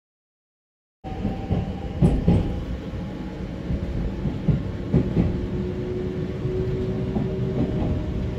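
A train rumbles along the tracks as heard from inside a carriage.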